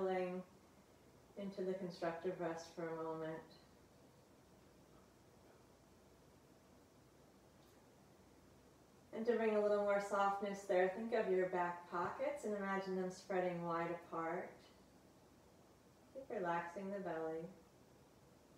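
A woman speaks calmly and slowly through a close microphone, with pauses.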